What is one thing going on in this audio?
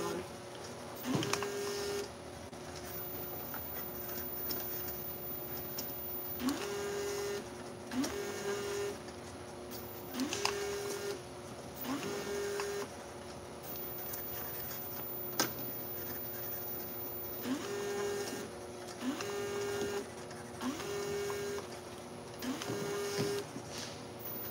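A labelling machine gives a short rising whir and beep each time a container passes through.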